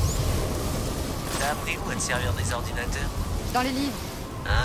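An electric charge crackles and buzzes sharply.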